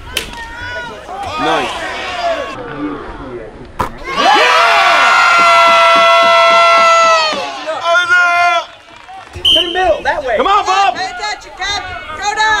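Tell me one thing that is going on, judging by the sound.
Spectators shout and cheer loudly nearby, outdoors.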